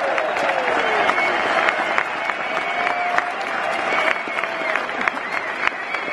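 People nearby clap their hands in rhythm.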